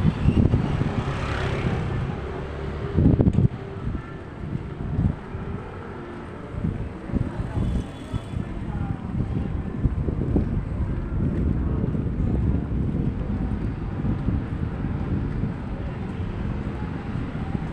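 Footsteps walk along a street outdoors as wind rumbles.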